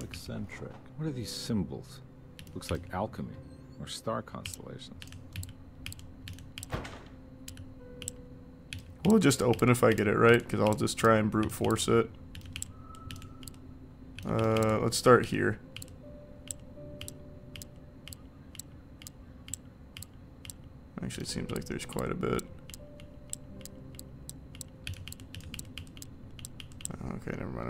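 Lock dials click as they turn.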